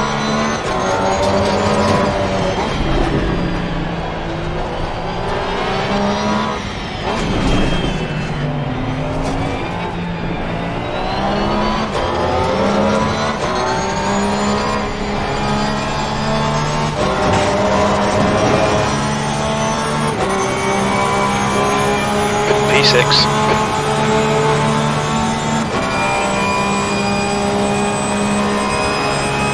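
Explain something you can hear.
A race car engine roars loudly, its pitch rising as it revs and dropping sharply at each gear change.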